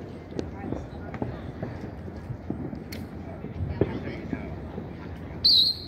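Fireworks pop and boom in the distance.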